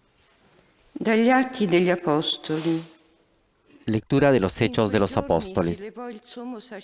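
A woman reads out calmly into a microphone in an echoing room.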